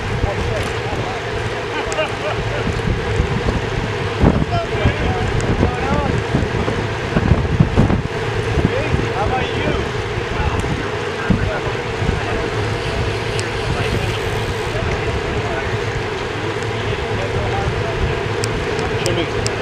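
Bicycle chains whir and freewheels tick.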